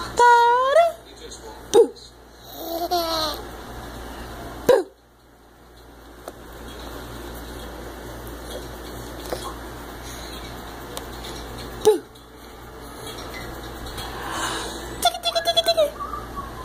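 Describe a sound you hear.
A baby squeals and laughs close by.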